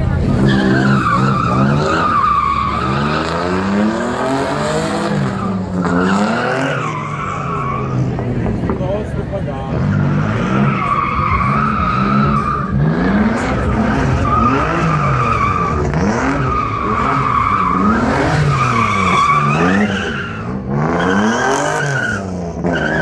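A car engine revs hard and rises and falls in pitch again and again.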